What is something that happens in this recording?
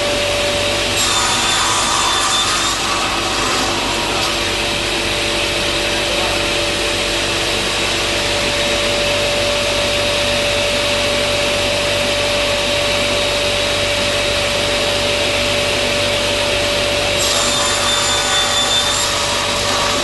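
A saw blade screeches as it cuts through metal.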